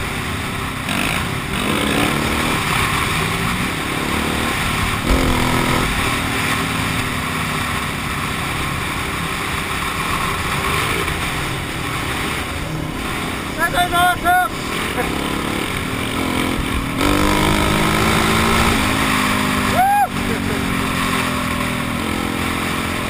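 A dirt bike engine revs and roars steadily up close.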